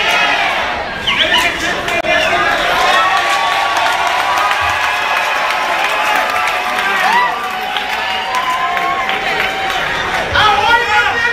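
An audience cheers and shouts loudly.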